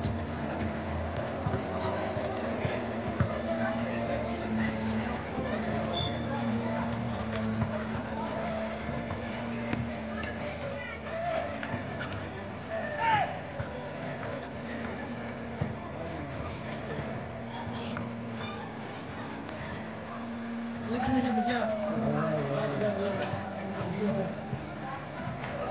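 Young men call out to each other during play, outdoors.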